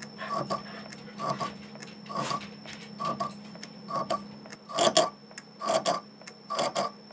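A lathe tool cuts metal in repeated scraping bursts.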